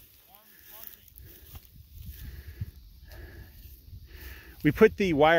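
A cow tears at grass while grazing.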